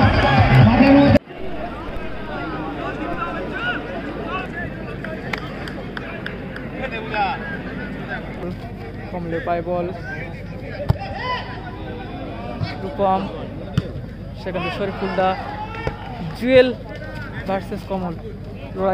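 A crowd of spectators chatters and cheers in the distance.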